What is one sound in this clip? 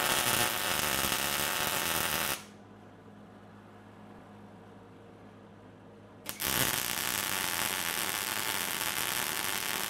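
A welding arc crackles and sizzles loudly.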